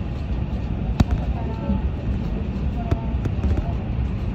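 A train's wheels clack over rail joints.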